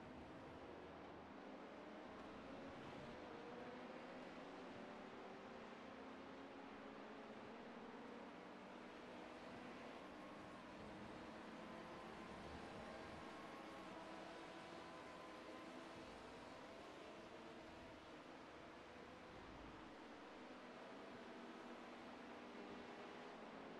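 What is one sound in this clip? A racing car's engine drones steadily at high revs.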